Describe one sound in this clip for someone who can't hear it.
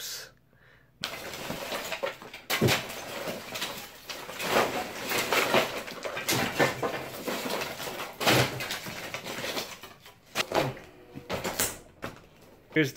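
A man breaks wooden lath with a hammer, with sharp cracks and clatter.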